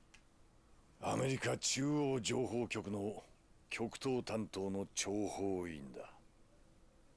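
A middle-aged man speaks calmly and gravely.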